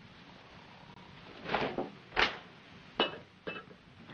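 A lace curtain flaps in a gust of wind.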